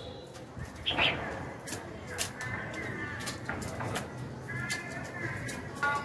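A caged songbird chirps softly.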